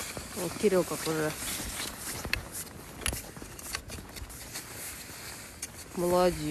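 Skis scrape and slide on snow.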